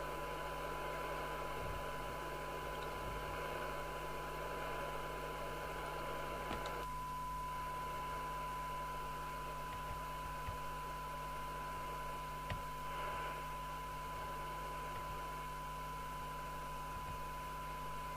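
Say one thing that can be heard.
A screwdriver clicks and scrapes faintly against a circuit board.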